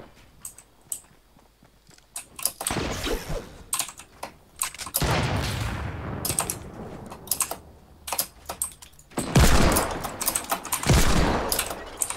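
A pickaxe strikes metal with repeated clanging blows.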